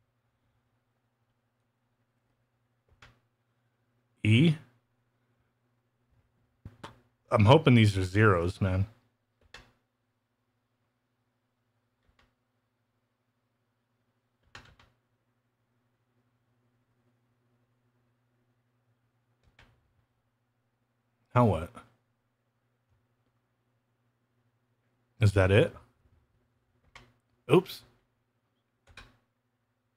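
A game controller's buttons click.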